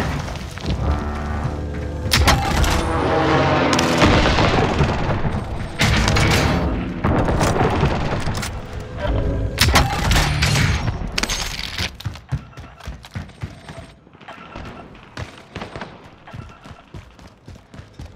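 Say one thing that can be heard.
A rifle's magazine clicks and clatters during a reload.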